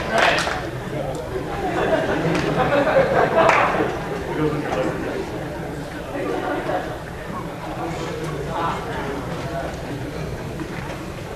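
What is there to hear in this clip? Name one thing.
A young man speaks into a microphone over loudspeakers in a large hall.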